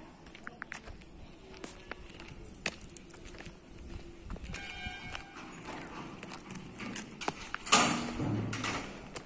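A child's sneakers patter softly on asphalt.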